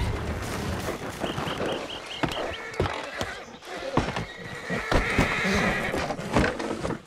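Wooden wagon wheels rattle and creak along the road.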